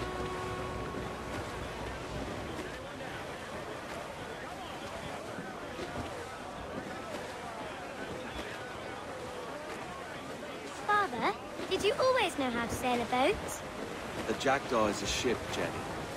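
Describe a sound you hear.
Wind blows steadily over a sailing ship at sea.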